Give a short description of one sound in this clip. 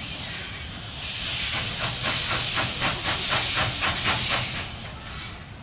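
Steam hisses loudly from a steam locomotive.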